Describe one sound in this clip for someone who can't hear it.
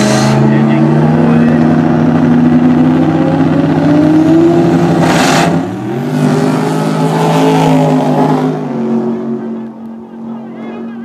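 Drag racing car engines roar loudly nearby, then fade into the distance.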